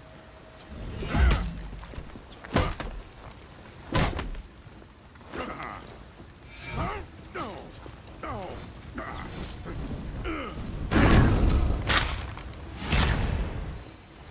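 Swords clash and strike with sharp metallic clangs.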